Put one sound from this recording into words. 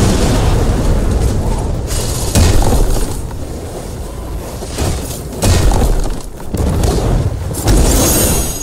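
Rocks crash and crumble with heavy booming thuds.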